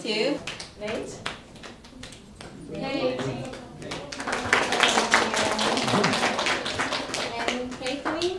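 Hands clap loudly several times.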